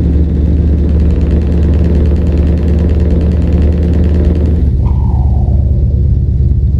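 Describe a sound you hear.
A truck engine rumbles steadily as the truck drives along a road.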